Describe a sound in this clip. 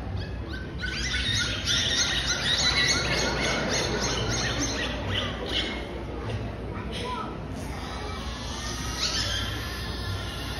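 Killer whales squeal and whistle.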